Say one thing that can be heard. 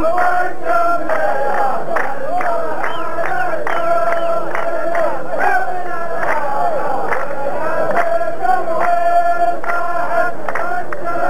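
Men clap their hands in rhythm.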